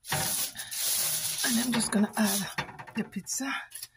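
A glass dish slides and scrapes across a metal rack.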